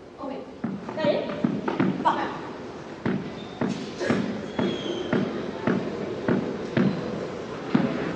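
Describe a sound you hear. A ball bounces repeatedly on a hard court floor.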